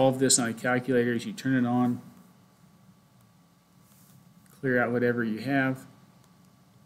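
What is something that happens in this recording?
A man speaks calmly into a nearby microphone.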